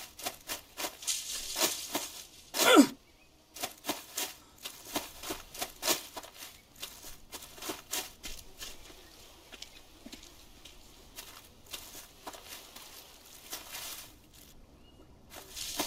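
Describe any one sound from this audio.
Leaves and branches brush and swish against a body moving through plants.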